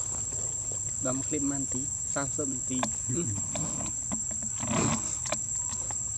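A monkey makes soft squeaks and grunts close by.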